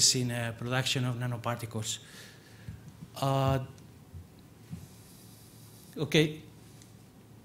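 A middle-aged man speaks calmly into a microphone, in bursts with long pauses.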